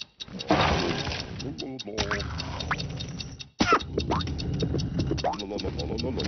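Playful cartoon game music plays.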